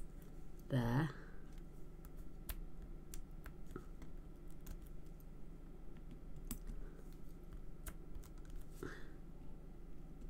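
Paper rustles and taps softly as hands handle card.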